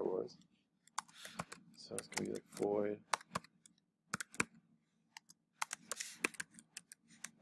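Keys on a computer keyboard click as someone types.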